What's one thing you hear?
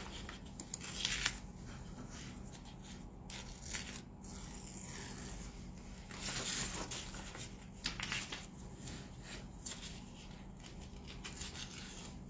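Paper rustles and crinkles as it is handled and folded.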